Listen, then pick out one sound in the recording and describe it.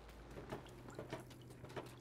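Small paws patter softly on wooden stairs.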